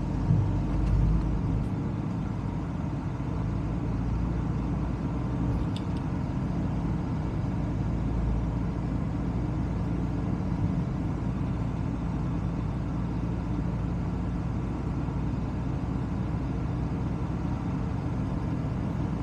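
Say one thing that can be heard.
A car drives along a road with a steady low rumble of tyres and engine.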